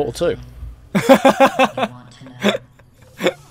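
A young man laughs into a close microphone.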